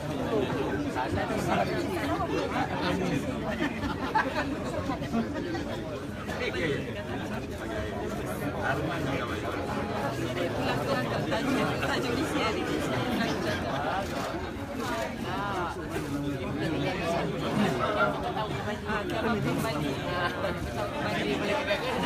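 Many men chatter and talk over one another nearby.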